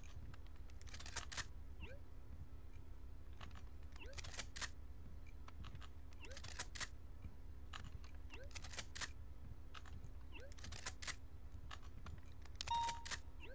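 Shotgun shells click into a gun one after another.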